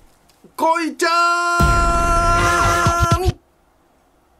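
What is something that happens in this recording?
A middle-aged man calls out in a long drawn-out, sing-song voice.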